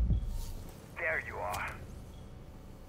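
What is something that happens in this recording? Bullets clang against a metal shield.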